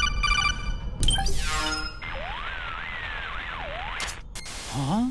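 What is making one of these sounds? Electronic beeps and chirps sound from a radio device.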